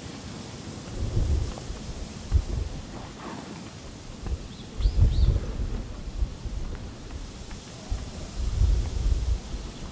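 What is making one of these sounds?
Footsteps tread down stone steps outdoors.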